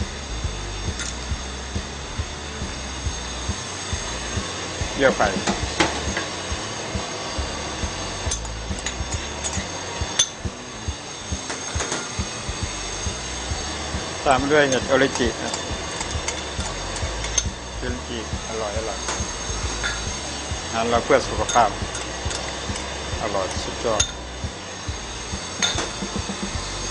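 Metal ladles clink against bowls and a wok.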